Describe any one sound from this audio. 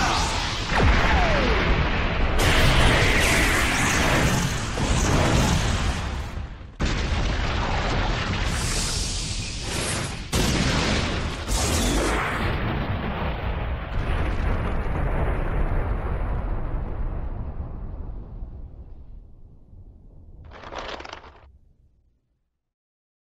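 Huge explosions boom and roar, then slowly die away.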